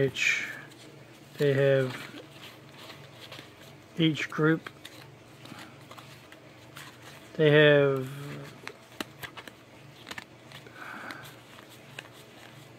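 Stiff playing cards rustle and slide against each other in someone's hands.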